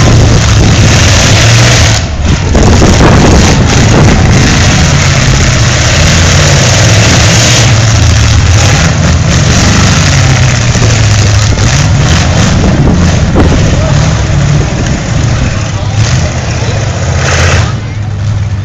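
A car engine roars loudly and revs.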